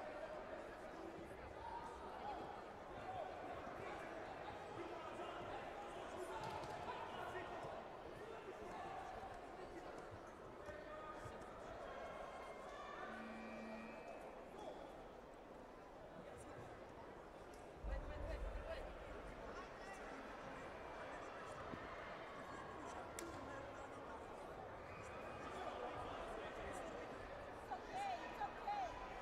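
Many voices chatter and call out across a large echoing hall.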